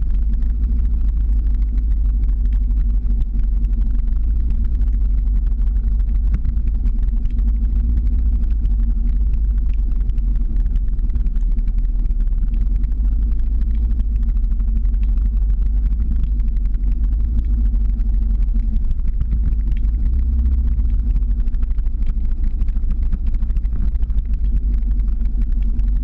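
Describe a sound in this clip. Skateboard wheels roll steadily on asphalt.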